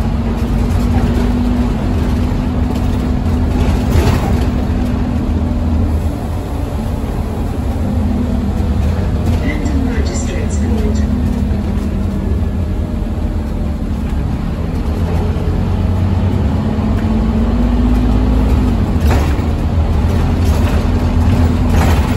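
The diesel engine of a single-deck city bus drones, heard from inside.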